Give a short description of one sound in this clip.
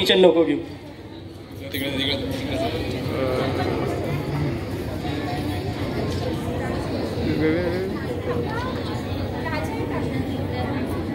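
A young man speaks into a microphone through loudspeakers in a large echoing hall.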